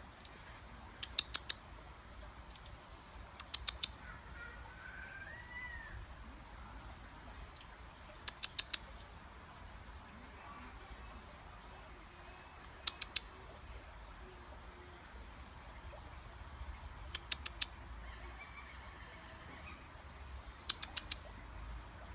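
A small bird gives short, sharp ticking calls in quick bursts, outdoors.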